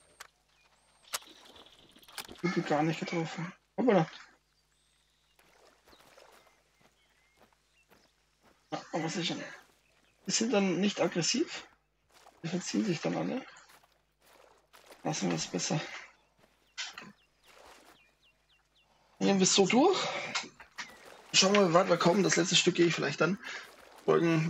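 Footsteps splash through shallow water and mud.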